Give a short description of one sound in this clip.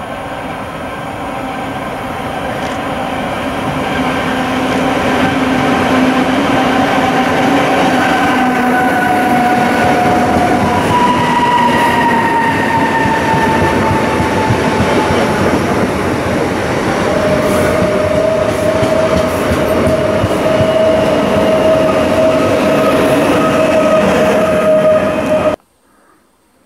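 A passenger train approaches and rushes past close by with a loud, steady rumble.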